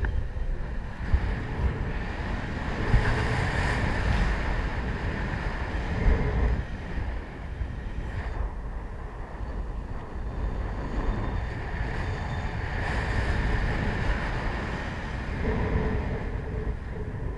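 Wind rushes and buffets loudly against the microphone, outdoors high in the air.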